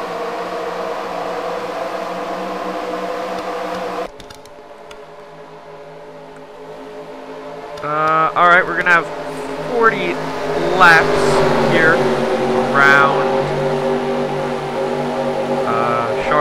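A pack of racing car engines drones steadily, then rises into loud revving whines.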